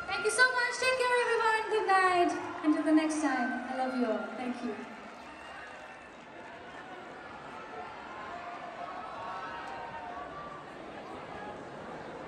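A woman sings through loudspeakers in a large echoing hall.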